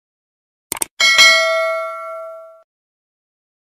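A small bell rings and fades away.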